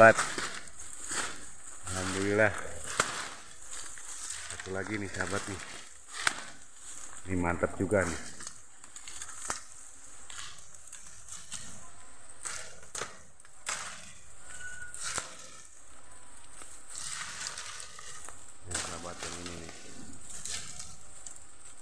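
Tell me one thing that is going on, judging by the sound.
Dry bamboo leaves and stems rustle and snap as a man pushes through them.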